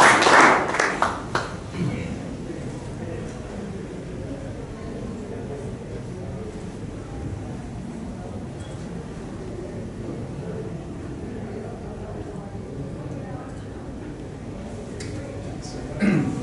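A man speaks quietly at a distance in a room.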